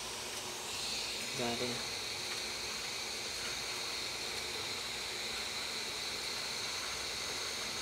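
A heat gun blows with a steady, whirring hiss.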